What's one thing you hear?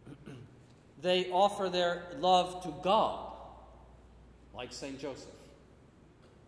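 An older man chants in a steady, sung voice through a microphone in a large echoing hall.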